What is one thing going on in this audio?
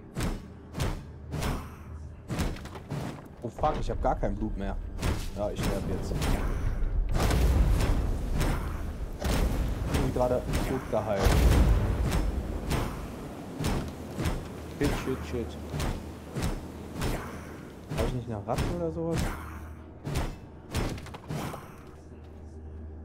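Weapon blows strike repeatedly in quick, sharp hits.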